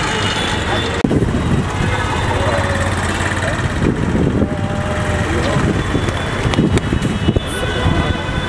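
Young men call out loudly nearby.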